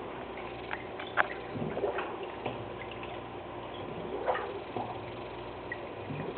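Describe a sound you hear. Water trickles gently from a small aquarium waterfall.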